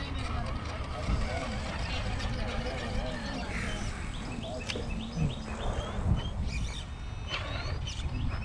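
A small electric motor whirs and whines as a toy truck crawls along.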